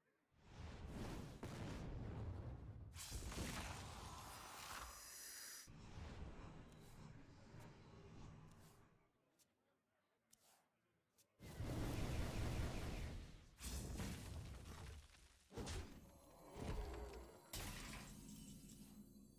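Magical game effects whoosh and chime.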